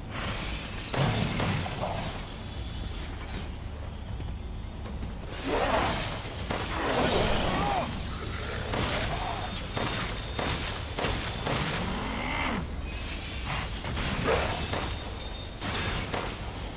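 A pistol fires sharp, loud shots again and again.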